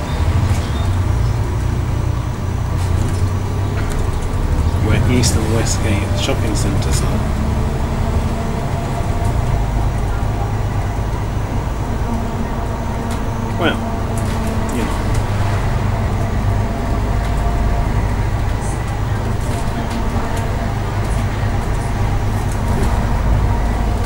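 A bus engine rumbles steadily while driving along a road.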